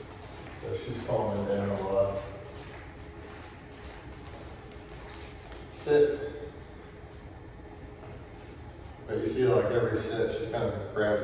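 A man speaks calmly nearby in a room with a slight echo.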